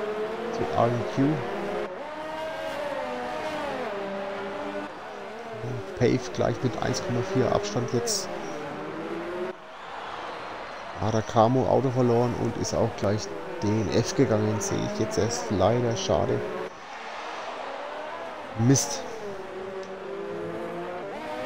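Racing car engines whine loudly, rising and falling in pitch as they speed up and brake.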